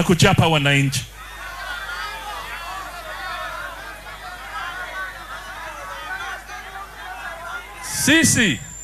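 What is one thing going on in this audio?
A crowd cheers and murmurs.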